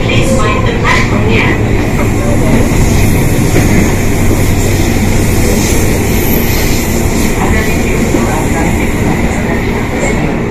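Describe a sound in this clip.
A passing train rumbles and rattles loudly close by.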